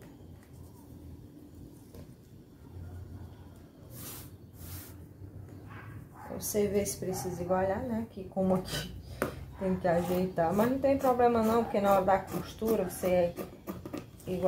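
Fabric rustles as hands smooth it flat.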